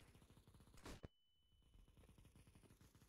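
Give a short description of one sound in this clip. A high steady ringing tone follows briefly and cuts off.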